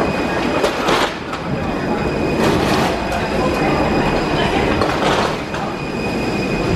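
A rolling suitcase rattles along a hard floor.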